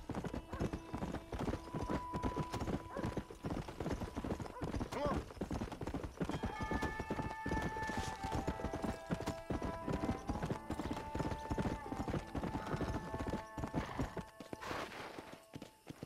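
A horse's hooves pound rapidly on a dirt track.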